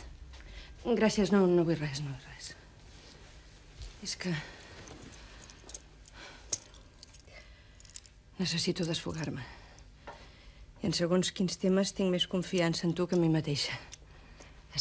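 A middle-aged woman speaks calmly and quietly nearby.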